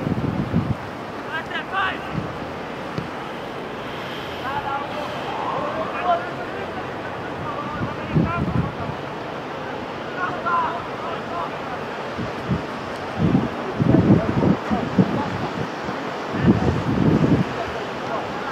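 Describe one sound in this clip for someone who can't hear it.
Wind gusts across the microphone.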